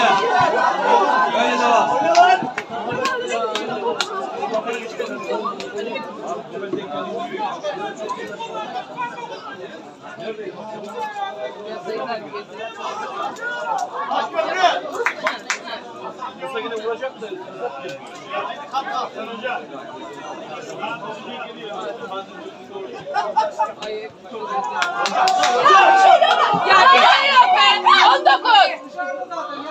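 Footballers shout to each other across an open pitch.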